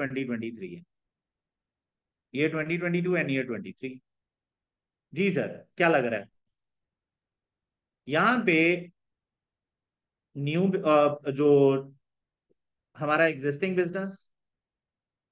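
A young man speaks calmly into a microphone, in short phrases with pauses.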